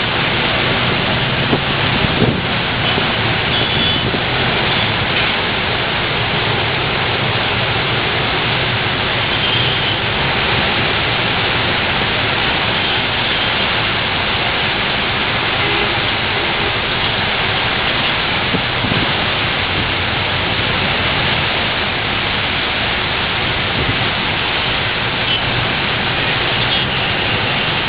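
Traffic hisses along a wet road in the rain.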